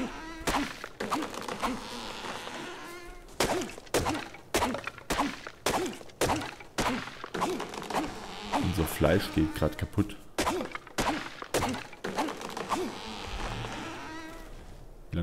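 A stone hatchet chops into a tree trunk with repeated sharp knocks.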